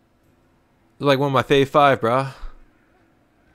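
A man speaks close by in a low, firm voice.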